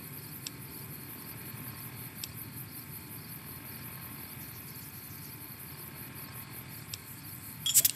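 An electronic device gives short, soft clicks.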